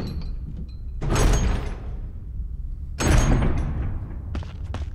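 A heavy metal door creaks open with a loud scraping groan.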